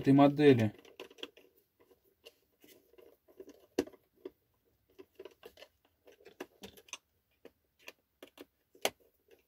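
A screwdriver clicks and scrapes against small plastic parts.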